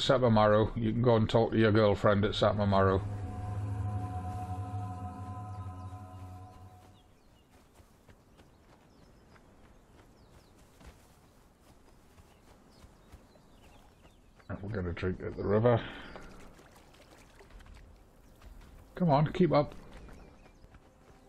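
Footsteps run over sand and grass.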